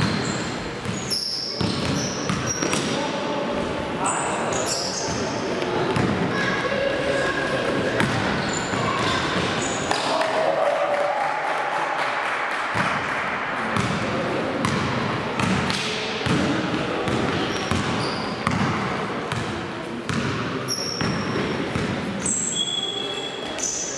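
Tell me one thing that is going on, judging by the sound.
Men shout to each other during play in an echoing hall.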